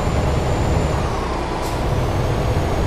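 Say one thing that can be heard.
A truck engine's pitch dips briefly as a gear changes.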